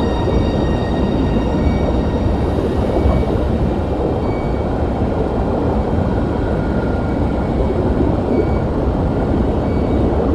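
An aircraft engine drones with a steady low rumble.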